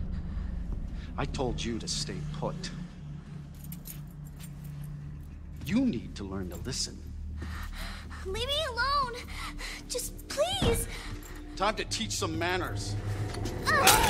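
An elderly man speaks sternly and menacingly.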